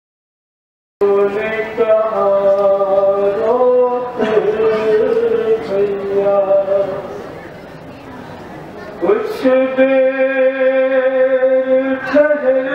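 A young man sings a mournful chant through a microphone and loudspeaker.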